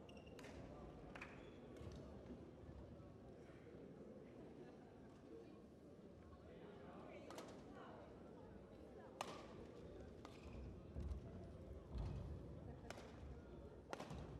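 A crowd murmurs in the background of a large hall.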